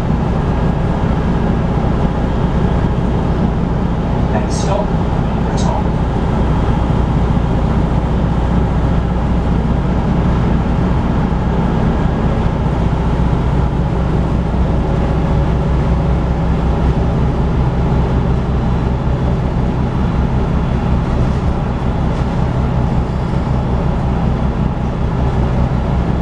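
A vehicle's engine rumbles steadily while driving at speed.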